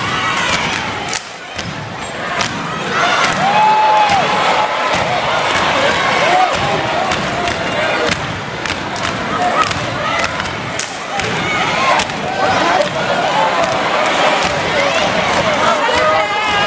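Step dancers stomp in unison on a hard court floor.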